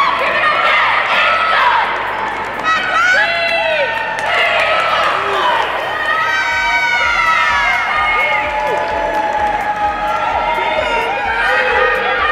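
A crowd of young women cheers and screams loudly in a large echoing hall.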